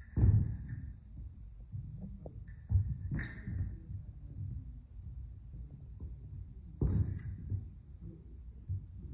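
Feet stamp and shuffle on a wooden floor.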